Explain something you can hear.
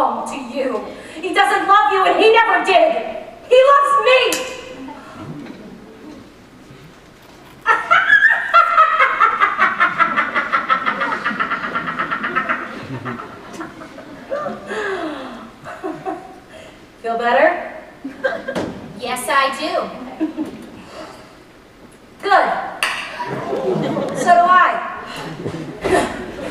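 A young woman speaks with animation, heard through a microphone in a large hall.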